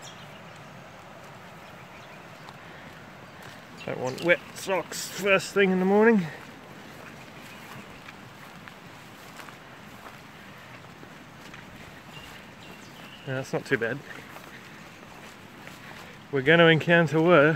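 Footsteps swish and crunch through dry grass.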